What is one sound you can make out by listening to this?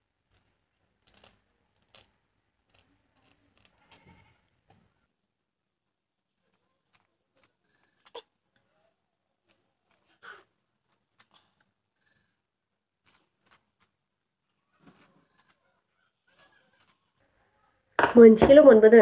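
A knife scrapes and clicks softly against a vegetable.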